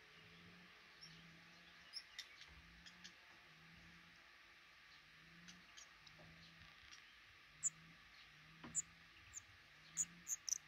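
Nestling birds cheep faintly close by.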